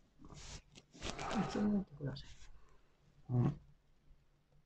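A young man groans and speaks in strained bursts close by.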